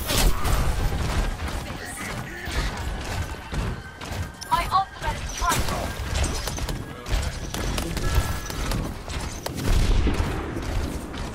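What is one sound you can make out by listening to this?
Gunfire rattles rapidly and continuously.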